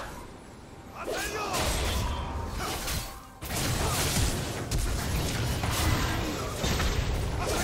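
Game spell effects whoosh and blast in a fight.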